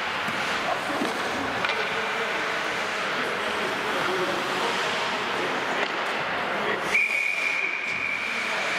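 Ice skates scrape and hiss across the ice in a large echoing rink.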